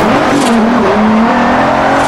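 Tyres screech as a car corners hard.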